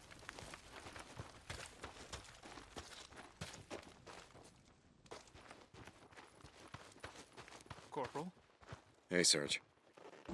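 Footsteps crunch on dirt.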